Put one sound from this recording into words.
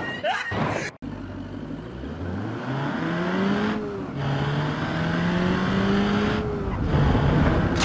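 A car engine revs and whines as it speeds up.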